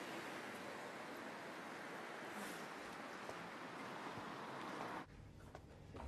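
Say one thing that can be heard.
Traffic hums steadily outdoors.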